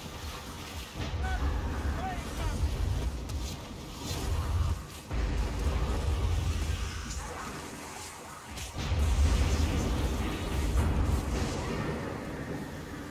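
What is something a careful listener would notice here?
Low rumbling booms roll through the fight.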